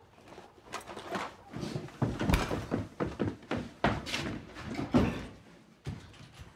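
Footsteps thump quickly down wooden stairs.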